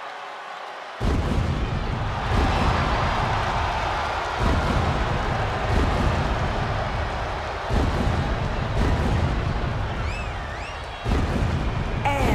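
Pyrotechnic flames burst with loud whooshing roars.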